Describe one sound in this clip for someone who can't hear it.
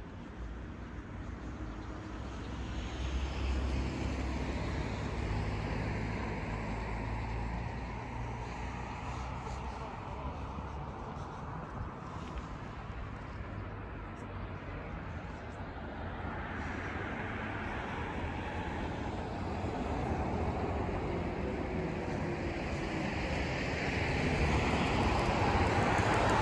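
Traffic rumbles steadily on a nearby road.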